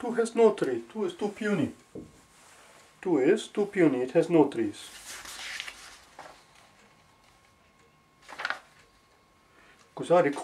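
A man speaks calmly and clearly, close to a microphone, in short phrases with pauses.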